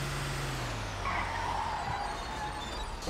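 Truck brakes squeal briefly as the truck stops.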